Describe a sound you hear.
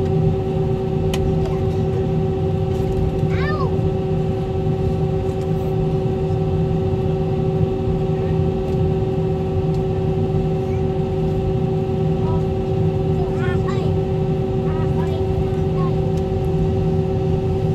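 A jet engine hums steadily with a low rumble as a plane taxis.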